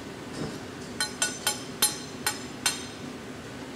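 A metal tool taps sharply against a blowpipe with a bright ringing.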